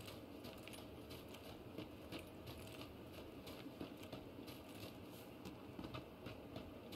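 Footsteps crunch quickly through dry grass.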